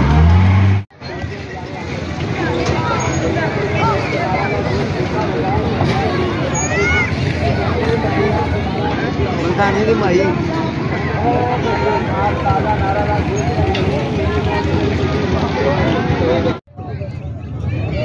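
A crowd chatters and calls out all around, outdoors.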